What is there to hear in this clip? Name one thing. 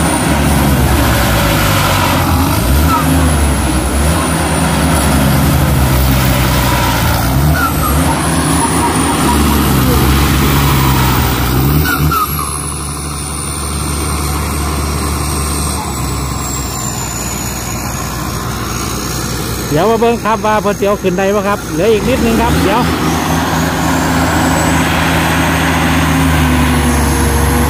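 A tractor engine runs loudly and steadily nearby.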